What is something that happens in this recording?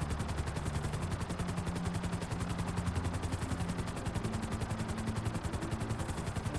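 A helicopter's rotor chops steadily with a deep engine drone.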